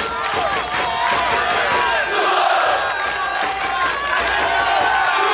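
A large crowd of fans chants and cheers loudly in an open stadium.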